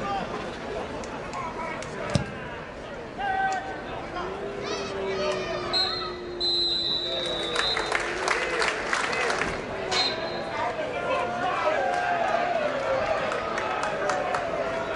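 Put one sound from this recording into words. A crowd murmurs and calls out outdoors.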